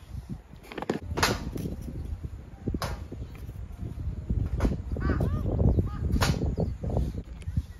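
Wooden sticks clatter onto a metal grate.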